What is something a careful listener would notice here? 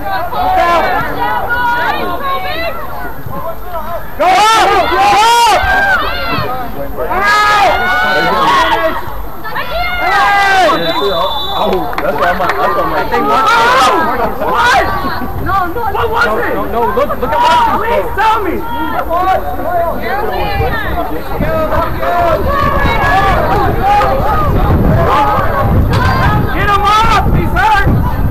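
Young women call out to each other across an open field, far off.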